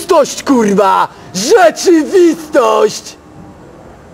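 A young man speaks loudly and with animation close by.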